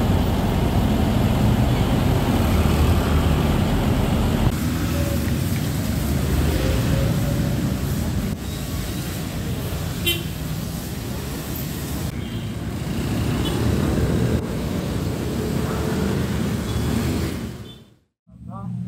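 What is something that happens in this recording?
Traffic rumbles past on a wet street.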